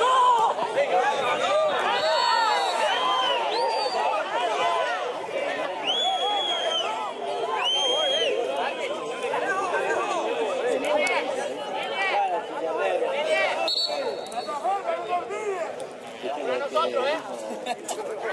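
Young men shout and call out to each other across an open outdoor field.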